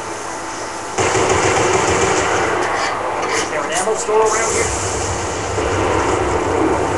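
Rapid gunshots from a video game ring out through a small loudspeaker.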